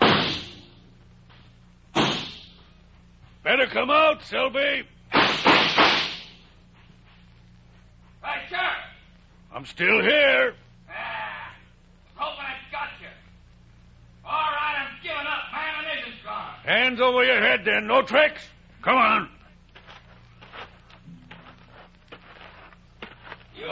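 A man speaks with animation through an old radio recording.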